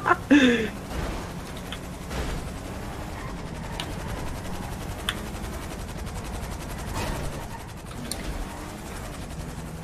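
A car engine runs as a car drives through traffic in a video game.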